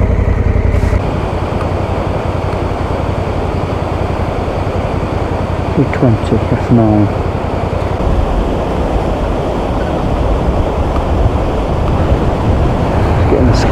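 A stream rushes and splashes over rocks nearby.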